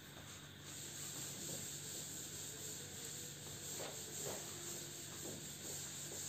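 A duster rubs across a chalkboard.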